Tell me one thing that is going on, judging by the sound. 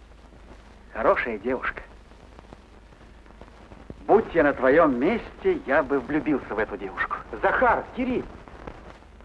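A second man answers calmly, close by.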